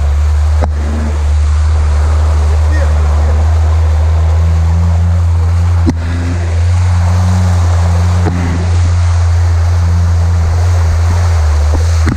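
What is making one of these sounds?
Tyres slosh through mud and puddles.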